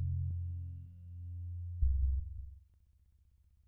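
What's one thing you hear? A synthesizer plays a deep, droning bass chord that swells and then fades out.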